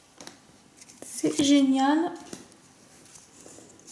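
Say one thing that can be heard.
Trading cards slide and flick against each other.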